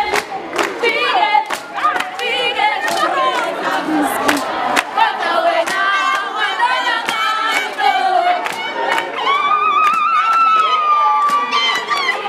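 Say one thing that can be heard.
A group of young women sing together loudly and joyfully.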